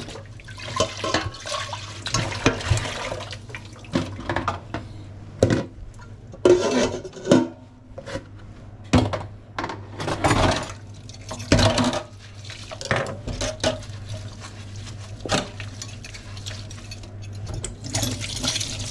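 Metal pots and utensils clatter against a steel sink.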